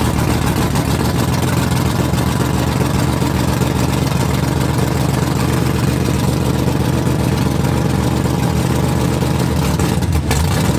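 A car engine idles with a loud, deep, lopey rumble close by.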